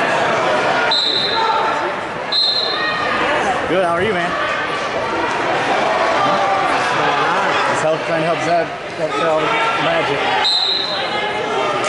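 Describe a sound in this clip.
A referee blows short, sharp whistle blasts.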